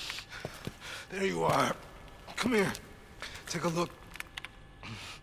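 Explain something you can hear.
A wounded man speaks weakly and slowly, close by.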